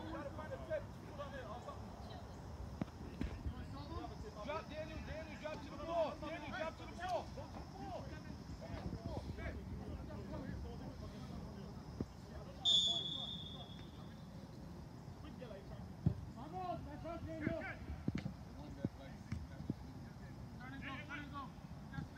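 Young men shout and call to each other across an open field in the distance.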